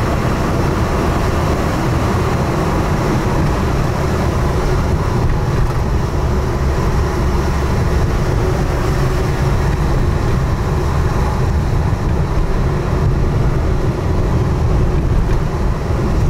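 Tyres rumble over a rough road surface.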